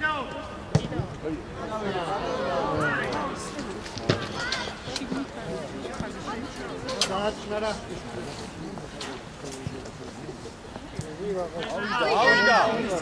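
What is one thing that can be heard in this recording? Young men shout to each other outdoors on an open field.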